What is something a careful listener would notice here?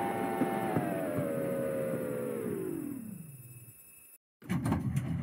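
A tram's electric motor whines and falls in pitch as the tram slows to a stop.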